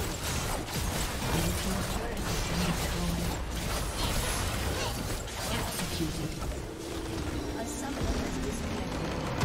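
Game spell effects crackle and burst in quick succession.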